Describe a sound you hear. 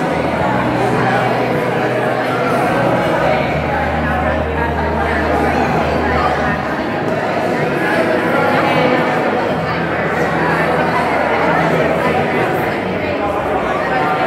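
A crowd of people chatters loudly all around.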